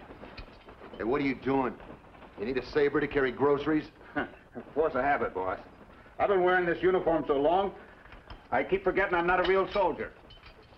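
An older man speaks with a gruff, animated voice nearby.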